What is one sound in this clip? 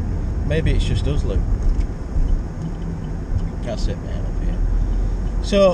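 A young man speaks casually close by inside a car.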